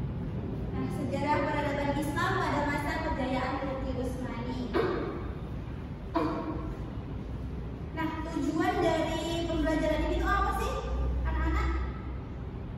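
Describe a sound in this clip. A young woman speaks calmly to a room, heard from across the room.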